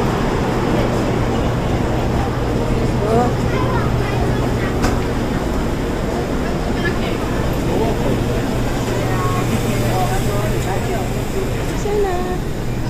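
A train hums and rumbles steadily while moving.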